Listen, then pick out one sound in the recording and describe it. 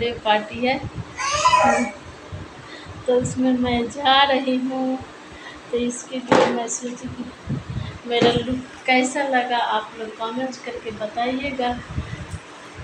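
A woman speaks with animation close to a phone microphone.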